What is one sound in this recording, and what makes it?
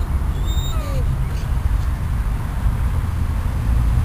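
A hand rubs and pats a dog's fur.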